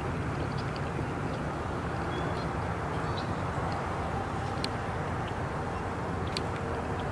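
Wind buffets a microphone outdoors.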